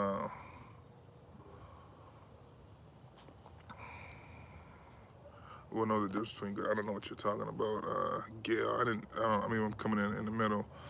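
A middle-aged man speaks calmly and close to the microphone.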